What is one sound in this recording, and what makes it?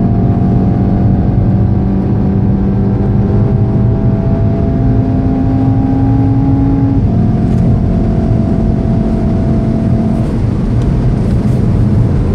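A car engine roars at high revs, its pitch climbing slowly and dropping at a gear change.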